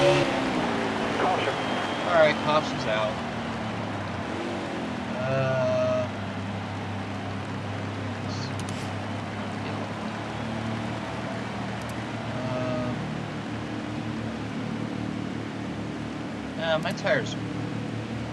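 A young man talks through a microphone in short bursts.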